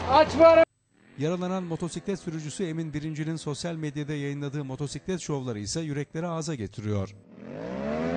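A motorcycle engine revs unevenly.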